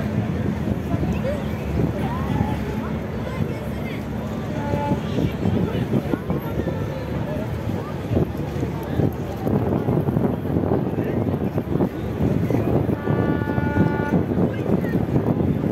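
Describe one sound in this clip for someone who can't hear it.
A crowd of people chatters and talks nearby outdoors.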